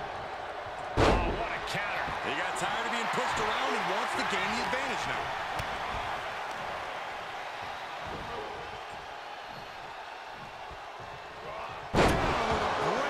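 A body slams heavily onto the wrestling ring mat with a loud thud.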